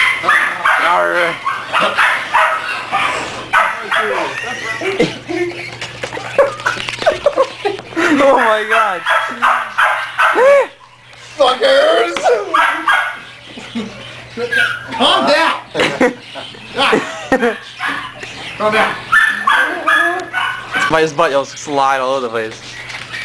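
Puppies yelp and whine while playing.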